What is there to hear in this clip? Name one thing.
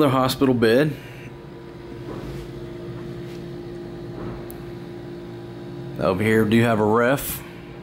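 A refrigerator hums steadily.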